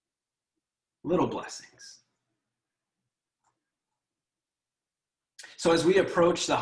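A young man speaks calmly and warmly, close to a microphone.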